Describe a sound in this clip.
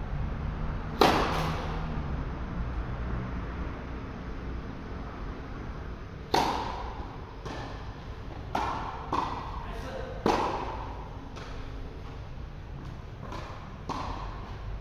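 Tennis balls are struck with rackets, with sharp pops echoing in a large hall.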